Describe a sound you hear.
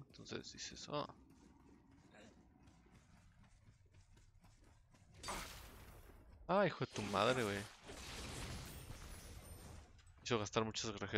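A young man talks with animation into a microphone nearby.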